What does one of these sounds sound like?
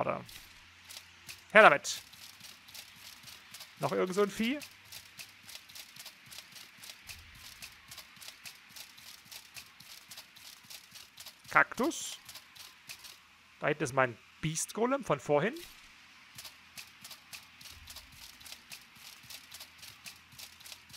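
Quick footsteps run over dry ground.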